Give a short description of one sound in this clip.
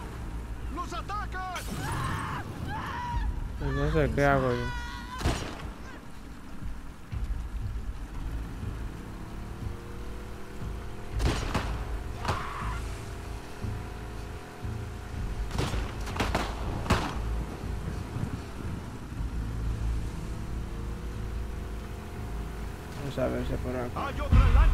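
An outboard motor hums steadily as a small boat moves across water.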